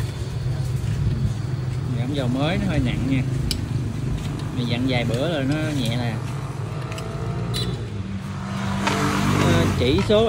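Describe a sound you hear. A wrench clicks and scrapes against a metal fitting.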